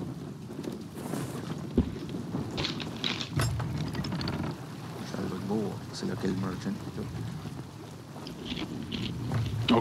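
Waves splash against the hull of a sailing ship.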